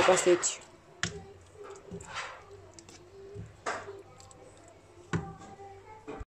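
A wooden spoon scrapes and stirs thick sauce in a pot.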